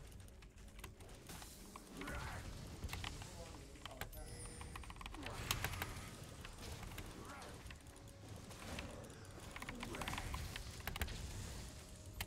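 Game sound effects click and whoosh.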